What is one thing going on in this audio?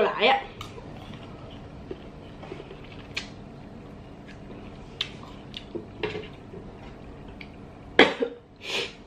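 A young woman chews and slurps fruit close to a microphone.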